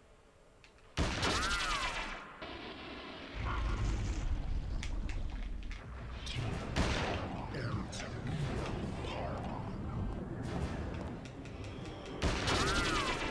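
A giant creature screeches and roars loudly in an echoing hall.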